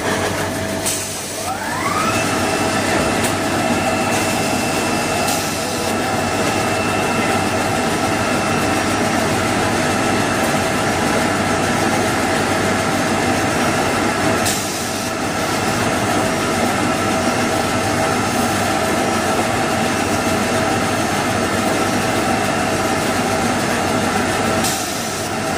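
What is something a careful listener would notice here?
Machine parts clack as paper rolls move through.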